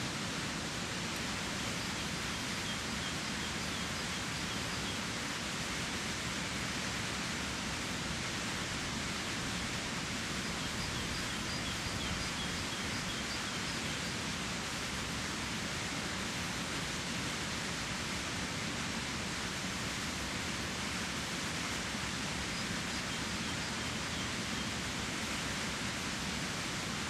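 A river flows and rushes.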